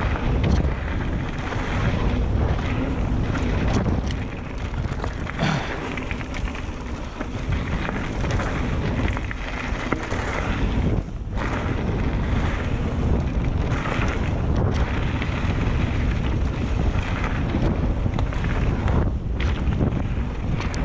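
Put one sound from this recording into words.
Bicycle tyres rumble and crunch over rocky dirt.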